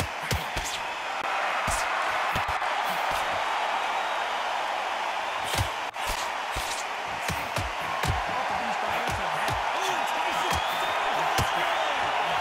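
Gloved punches thud against a body in quick bursts.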